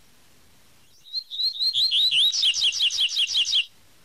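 A small bird sings a quick, high, whistling song that speeds up into rapid chirps.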